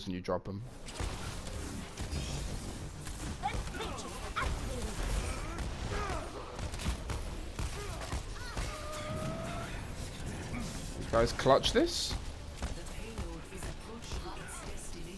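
Game weapons and magic blasts crackle and whoosh in a busy fight.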